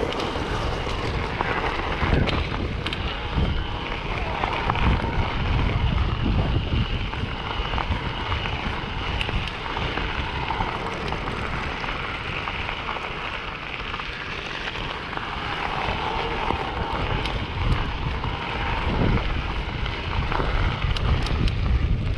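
Bicycle tyres crunch and rattle over gravel.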